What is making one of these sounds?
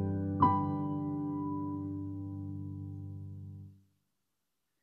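A piano note rings out and slowly fades.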